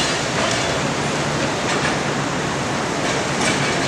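A forklift engine idles nearby with a steady low rumble.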